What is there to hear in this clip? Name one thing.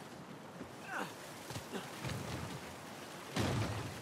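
A man grunts as he climbs.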